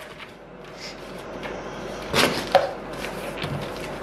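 Paper rustles as a sheet is pulled from a box.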